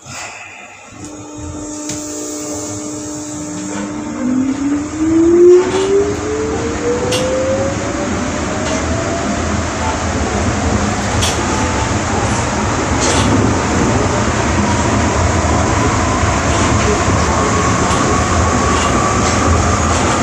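An electric train's motor hums and whines, rising steadily in pitch as the train speeds up.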